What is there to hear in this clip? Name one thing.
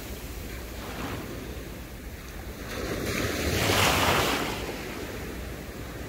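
A woman wades through shallow water with soft splashes.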